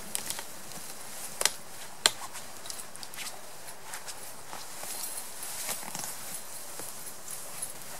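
Fabric rustles and swishes as a man climbs into a hammock.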